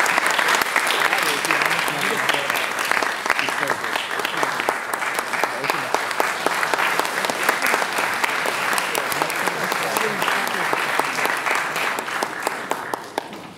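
A piano plays along with a choir.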